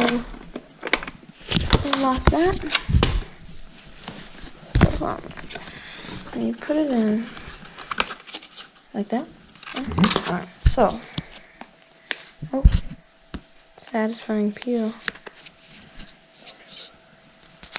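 Hard plastic parts knock and click as hands handle them.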